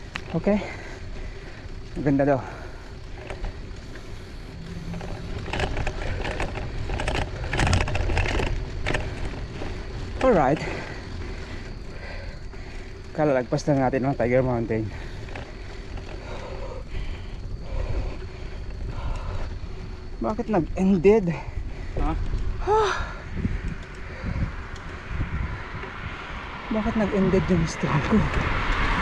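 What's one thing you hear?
Wind rumbles past the rider.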